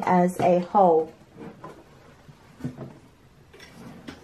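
A wooden box lid knocks as it is lifted open.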